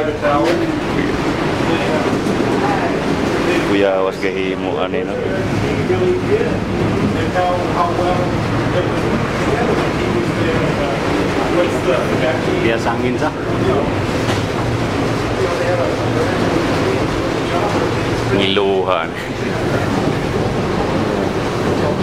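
A cable car cabin rumbles and hums steadily as it moves.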